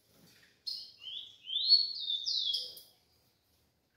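A small bird sings a rising, sliding whistle.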